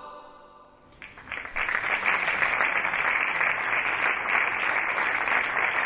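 A rock band with guitars and drums plays loudly.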